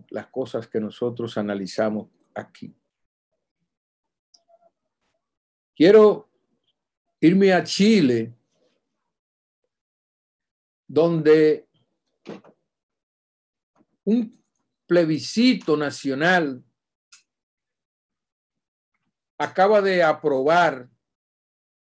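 A middle-aged man speaks with animation over an online call, in short bursts with pauses.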